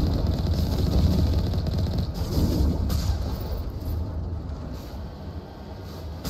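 A vehicle's engine rumbles as it drives over rough ground.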